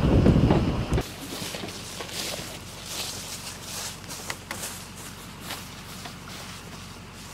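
Footsteps rustle softly through grass and dry leaves.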